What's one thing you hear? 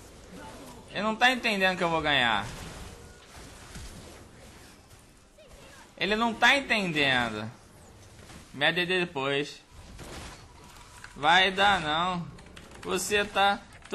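A young man speaks excitedly into a microphone, close up.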